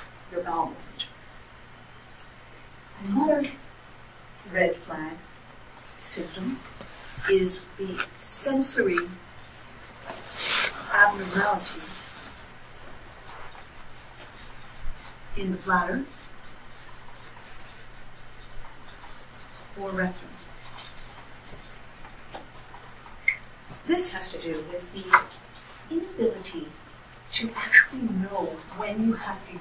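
A woman speaks in short phrases, heard from a distance.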